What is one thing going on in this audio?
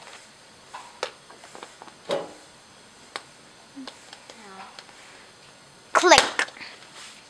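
Plastic parts click as they snap into place on a board.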